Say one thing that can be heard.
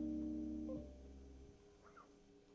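An electric guitar chord rings out through an amplifier and fades away.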